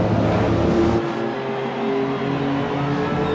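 A car engine hums in the distance.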